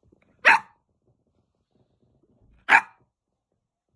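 A puppy gives two short, sharp yelps close by.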